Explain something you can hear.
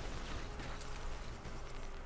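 An explosion bursts with a loud crackle.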